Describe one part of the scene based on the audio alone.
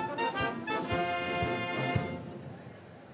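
A wind band plays a loud sustained chord in a large echoing hall.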